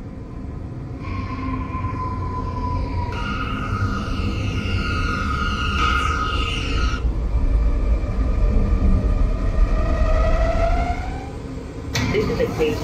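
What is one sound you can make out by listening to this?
A subway train pulls into a station, its motors whining down as it brakes.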